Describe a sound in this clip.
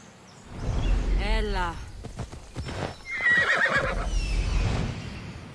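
An eagle screeches loudly.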